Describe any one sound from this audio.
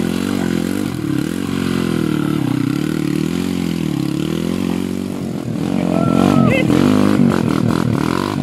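A dirt bike engine revs up and down, loud and close.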